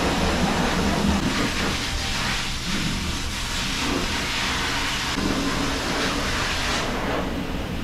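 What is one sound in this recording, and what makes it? A towel rubs briskly against a wet dog's fur.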